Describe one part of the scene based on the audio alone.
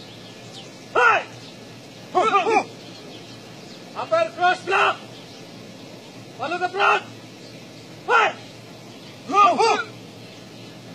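A group of young men shout sharply together in short bursts outdoors.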